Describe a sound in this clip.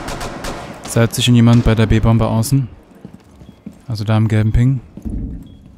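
A gun fires rapid bursts at close range.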